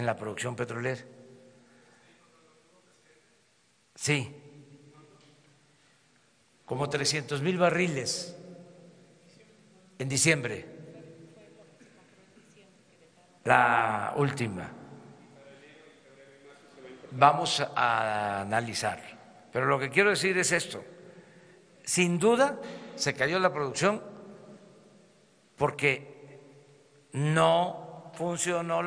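An elderly man speaks calmly into a microphone in a large echoing hall, with pauses between phrases.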